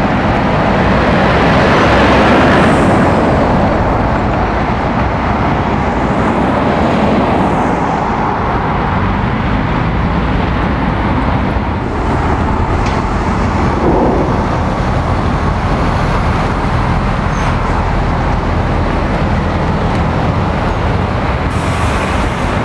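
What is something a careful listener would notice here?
Traffic drones steadily in the distance.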